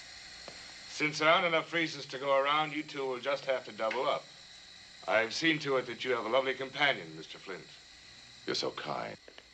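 A man speaks firmly and clearly, close by.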